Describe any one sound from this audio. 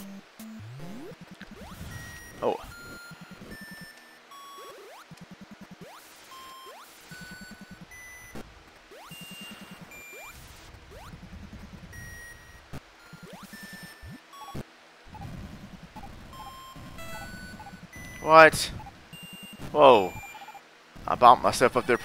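Chiptune video game music plays with bouncy electronic beeps.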